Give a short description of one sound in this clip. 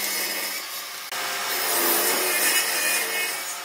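A table saw runs with a steady whine.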